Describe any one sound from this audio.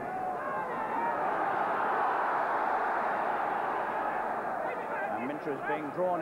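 A large crowd cheers and roars loudly in an echoing hall.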